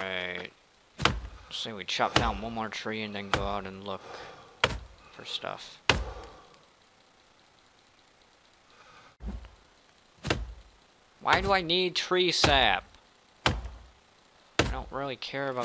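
An axe chops into a tree trunk with sharp knocks.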